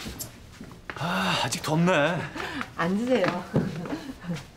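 A woman speaks brightly nearby.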